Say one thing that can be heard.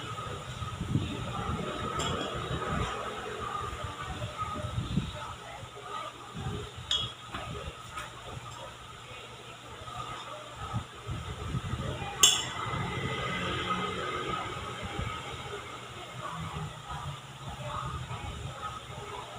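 Hands squish and roll sticky cookie dough.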